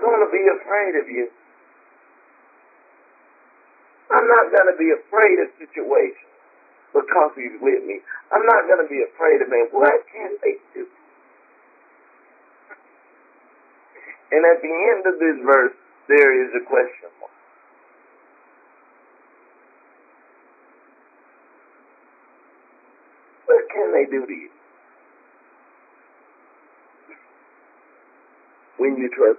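A woman speaks calmly into a microphone, in short phrases with long pauses.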